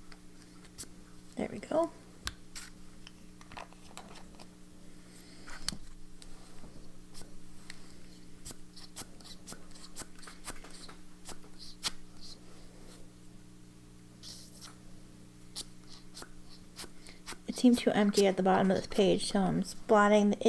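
Hands rustle and brush against paper pages.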